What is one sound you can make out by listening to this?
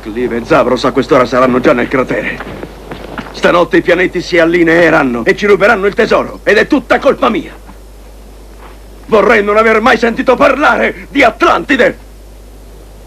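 A man speaks loudly and with animation outdoors.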